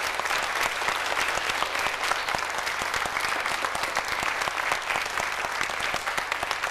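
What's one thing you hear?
An audience applauds steadily in a large hall.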